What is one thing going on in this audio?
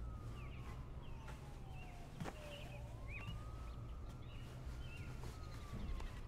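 Fabric rustles softly as a woman pulls on clothes.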